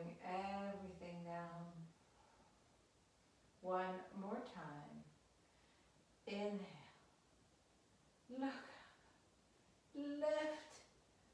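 A woman speaks calmly and clearly, as if giving instructions, in short phrases.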